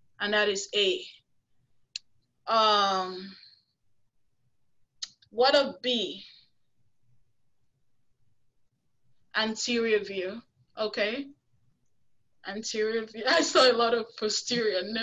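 A woman speaks calmly through an online call microphone, in bursts with pauses.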